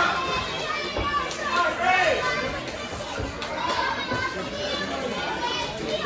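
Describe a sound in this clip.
Wrestlers thud onto a ring mat.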